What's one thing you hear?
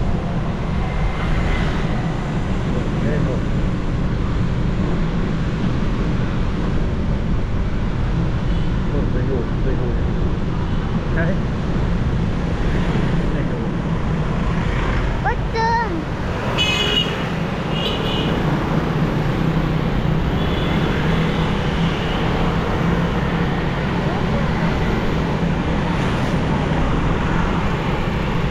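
Wind rumbles steadily against the microphone of a moving vehicle.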